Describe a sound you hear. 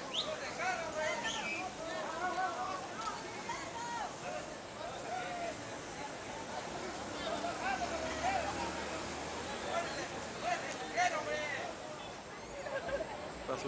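A crowd of men and women chatters outdoors.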